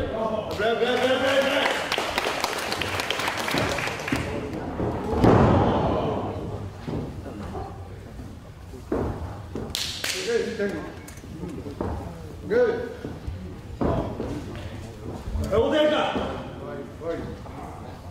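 Men shout loudly nearby.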